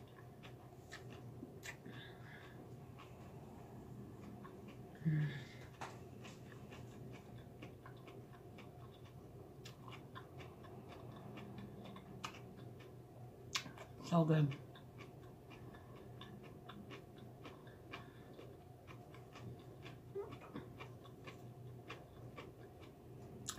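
A woman chews food noisily close by.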